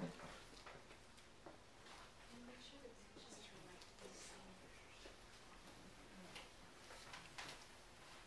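Pages of a book rustle as they are turned.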